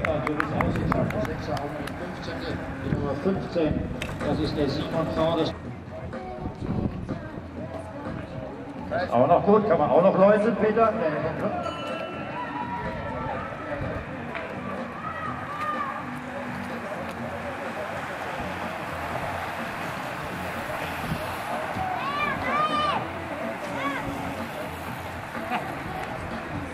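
A crowd of spectators talks and cheers nearby outdoors.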